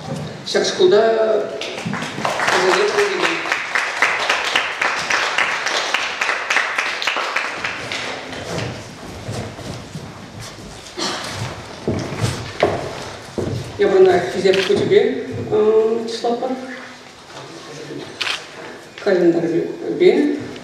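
A man speaks into a microphone over loudspeakers in an echoing hall.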